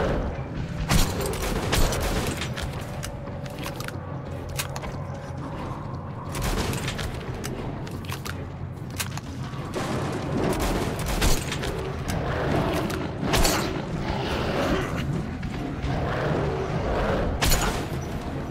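A rifle fires loud, sharp single shots.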